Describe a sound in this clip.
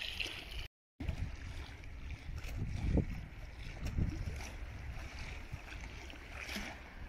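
Small waves lap against a stone embankment.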